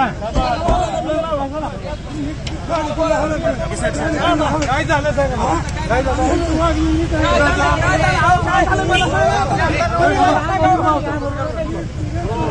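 A crowd of men clamours in the background.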